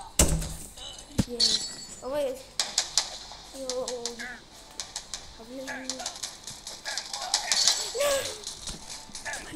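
Small cartoon guns fire in quick bursts.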